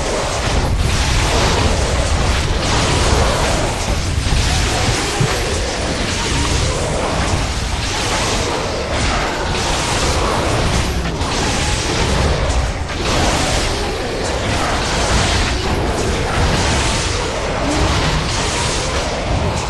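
Weapons clash and magic spells crackle in a fierce battle.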